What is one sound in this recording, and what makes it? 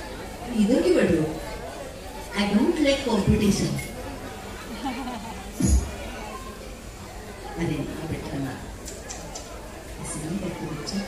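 A woman sings through loudspeakers, loud and echoing.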